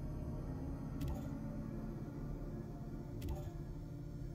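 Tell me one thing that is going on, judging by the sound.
A menu clicks softly as its pages switch.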